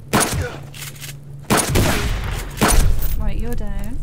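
A rifle fires single loud shots that echo.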